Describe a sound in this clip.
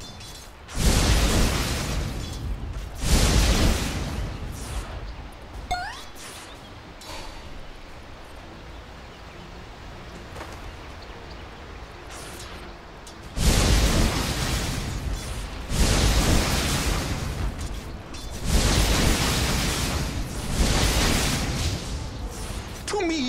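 Magic blasts whoosh and roar in loud bursts.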